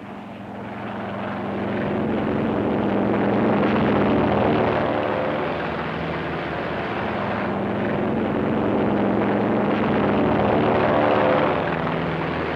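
A propeller plane's engine roars loudly.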